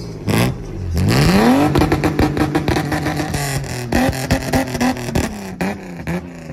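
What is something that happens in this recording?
A car engine climbs to a sustained high roar and then drops back.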